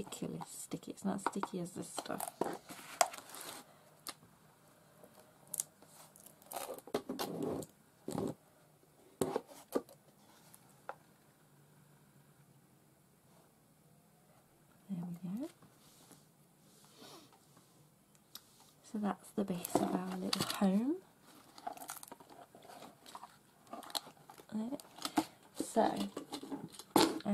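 Stiff card rustles and scrapes as hands handle a box.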